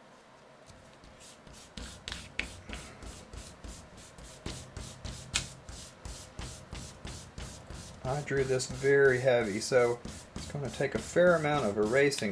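An eraser rubs quickly back and forth across paper.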